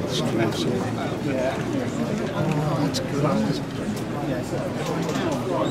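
A model train rumbles softly along its track.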